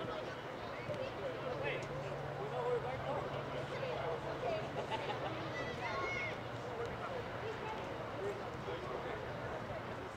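Young women call out to each other across an open outdoor field.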